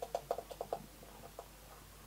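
Beer glugs as it is poured from a can into a glass.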